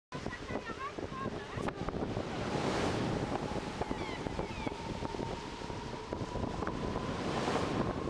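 Wind blows across the microphone in gusts.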